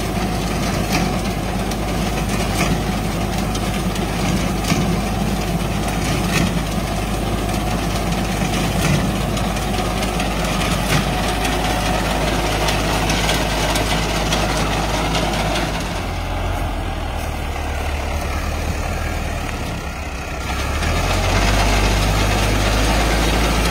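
A reaper clatters as it cuts through dry wheat stalks.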